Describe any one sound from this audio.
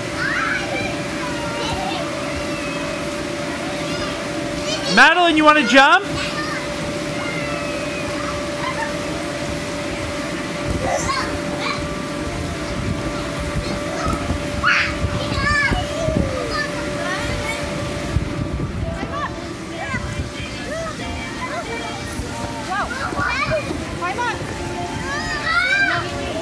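A blower hums steadily.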